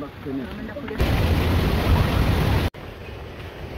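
Water trickles and splashes over rocks.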